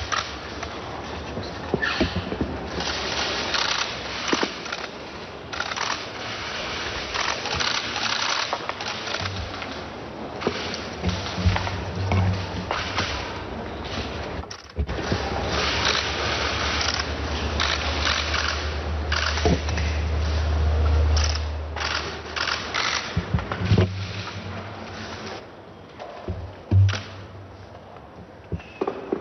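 A choir sings in a large echoing hall.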